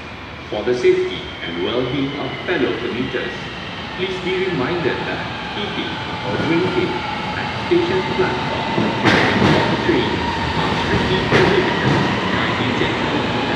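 Train brakes squeal as the train slows.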